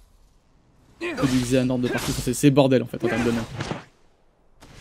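Blades clash and swish in a fight.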